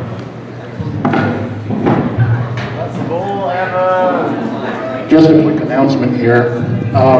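A man sings into a microphone over loudspeakers.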